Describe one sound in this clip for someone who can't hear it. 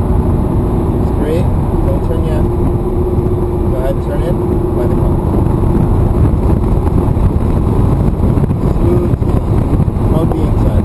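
A sports car engine roars loudly from inside the cabin as the car accelerates.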